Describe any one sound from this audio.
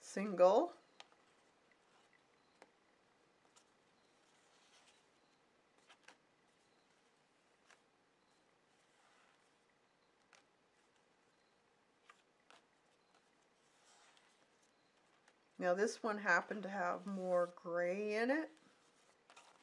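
Paper rustles and creases softly as it is folded by hand.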